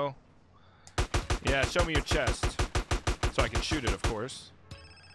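Rapid gunshots fire in a quick burst.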